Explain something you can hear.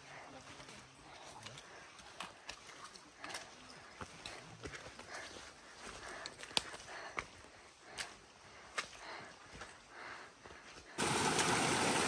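Footsteps crunch on a dry dirt trail.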